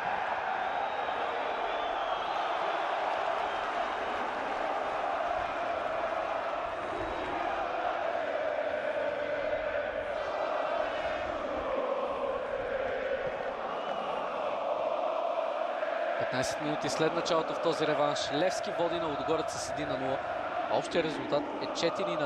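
A large stadium crowd chants and roars steadily outdoors.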